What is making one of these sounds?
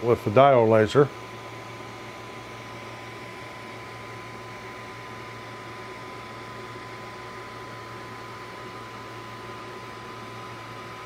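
A small cooling fan whirs steadily with a faint high hum.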